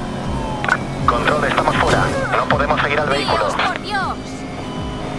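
Police sirens wail close by.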